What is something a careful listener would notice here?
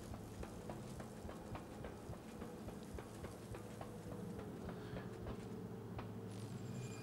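Footsteps thud quickly and evenly on a hard metal floor.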